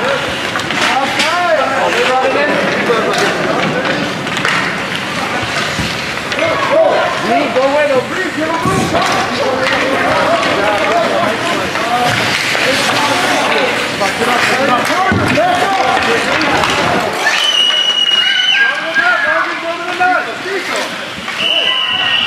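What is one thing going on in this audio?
Skates scrape and swish on ice.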